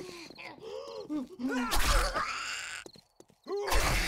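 A knife slashes into flesh with a wet thud.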